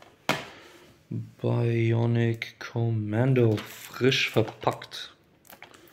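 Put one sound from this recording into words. A plastic disc case rattles and clacks as a hand handles it.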